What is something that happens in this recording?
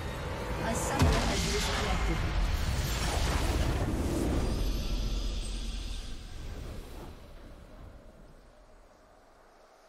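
A triumphant game fanfare swells and then fades away.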